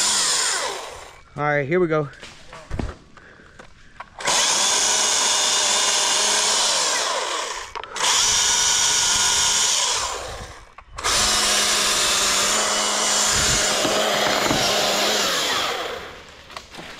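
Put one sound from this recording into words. A chainsaw roars close by in long, loud bursts.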